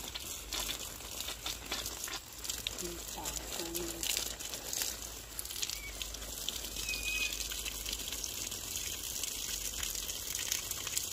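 A water spray hisses and patters onto leaves and soil.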